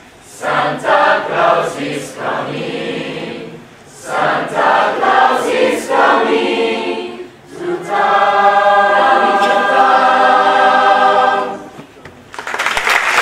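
A large mixed choir of young voices sings together in a reverberant hall.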